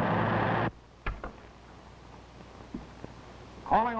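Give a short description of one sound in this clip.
A man shuffles papers.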